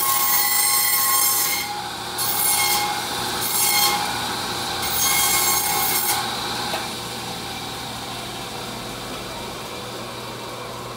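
An electric band saw hums steadily.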